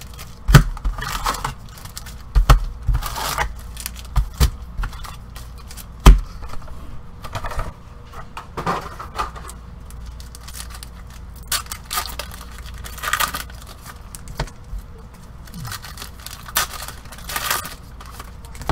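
Foil card packs crinkle and rustle in gloved hands.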